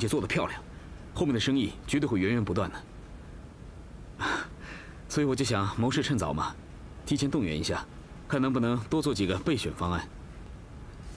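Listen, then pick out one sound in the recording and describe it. A man speaks calmly and persuasively nearby.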